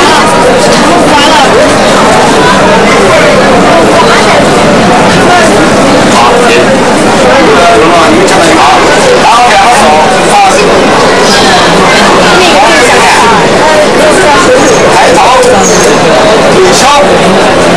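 Many children and adults chatter and call out all around.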